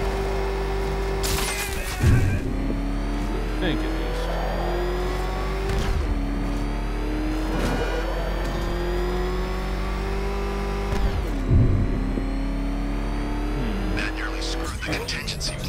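A powerful car engine roars and shifts through its gears.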